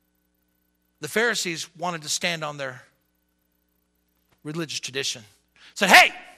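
A man preaches with emphasis into a microphone.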